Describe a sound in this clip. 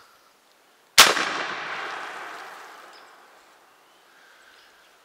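A shotgun fires once with a loud bang that echoes and fades outdoors.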